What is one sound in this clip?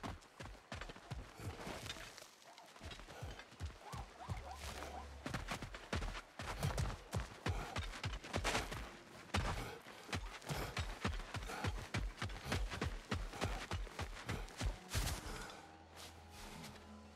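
Heavy footsteps crunch over rock and gravel at a steady pace.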